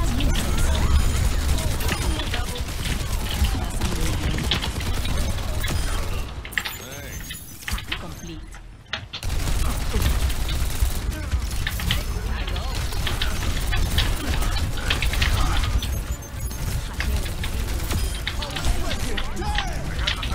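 Rapid gunfire rattles with loud blasts and impacts.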